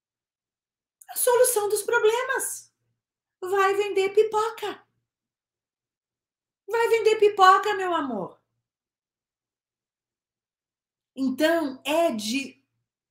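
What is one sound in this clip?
A woman speaks with animation into a close microphone, in short bursts with pauses.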